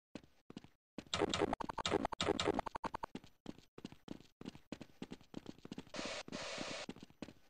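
Footsteps run quickly over stone and sand.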